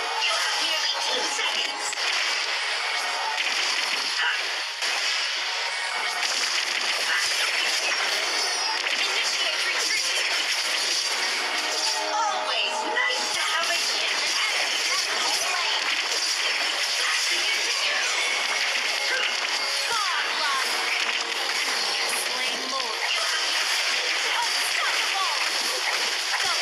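Game sound effects of spells and attacks clash and whoosh throughout.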